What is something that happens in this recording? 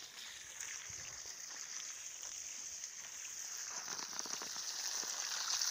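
Water sprays from a hose and splashes onto the soil.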